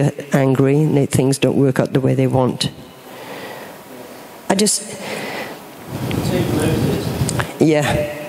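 An elderly woman speaks calmly through a microphone and loudspeakers in an echoing hall.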